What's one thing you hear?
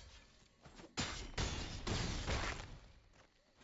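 Impact sounds burst as creatures clash.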